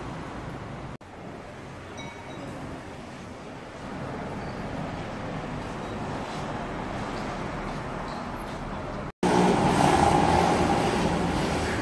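Traffic hums on a street below.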